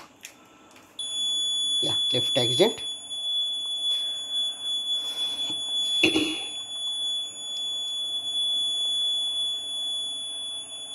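An electronic buzzer sounds a steady high-pitched tone.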